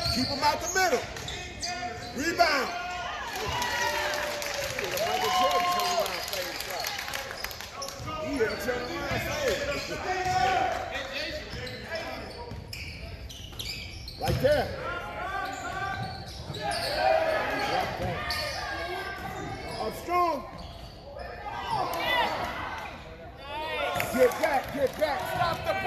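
Spectators talk and shout nearby.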